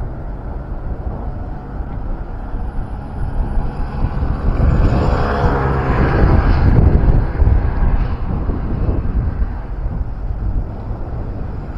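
A tram rolls by with a rising squeal.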